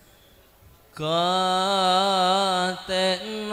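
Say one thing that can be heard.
A man sings loudly through a microphone with a wavering voice.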